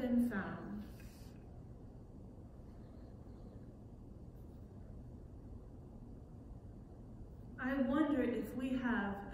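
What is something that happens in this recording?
A woman speaks calmly and close by, in a quiet room.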